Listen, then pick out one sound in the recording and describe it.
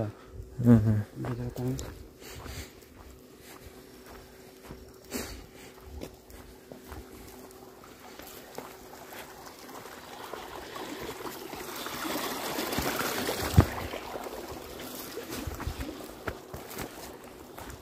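Footsteps crunch on a dry dirt path outdoors.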